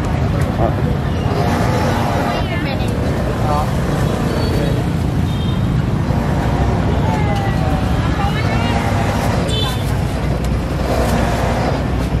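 A busy crowd chatters outdoors.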